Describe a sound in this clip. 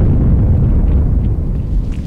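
A plasma blast bursts with a low rumble.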